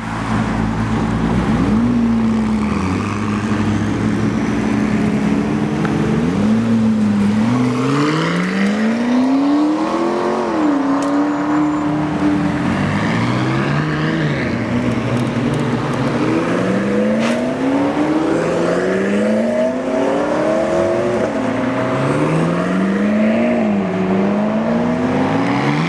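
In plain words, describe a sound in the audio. A sports car engine rumbles and revs repeatedly nearby.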